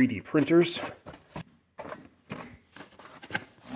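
A cardboard box rustles and scrapes as hands handle it.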